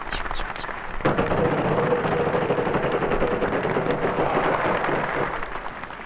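A game wheel spins with fast, even ticking.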